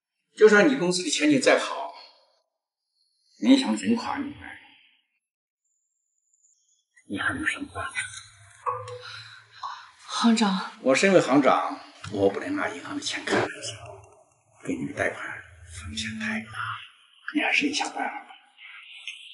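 An elderly man speaks calmly and firmly nearby.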